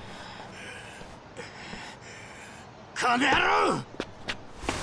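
A man grunts and groans in pain.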